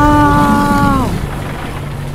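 A huge monster lets out a loud, wailing roar that drops in pitch.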